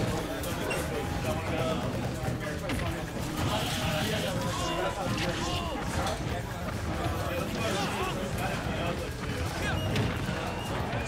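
Fighting game punches, blasts and whooshes crack sharply again and again.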